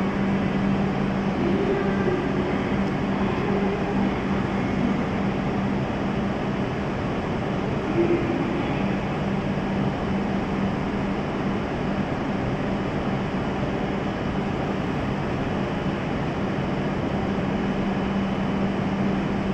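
A stopped train hums steadily under a large echoing roof.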